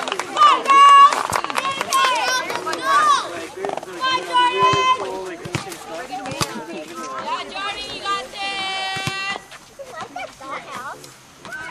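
Young women shout and cheer loudly nearby, outdoors.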